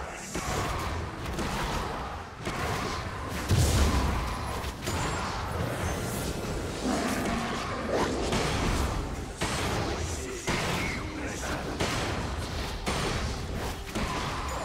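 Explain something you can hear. Weapons clash and thud in quick blows.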